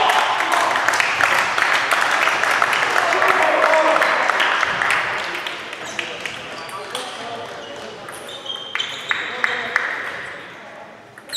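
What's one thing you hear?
Table tennis balls click rapidly on tables and paddles in a large echoing hall.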